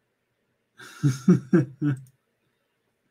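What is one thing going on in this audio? An older man laughs briefly.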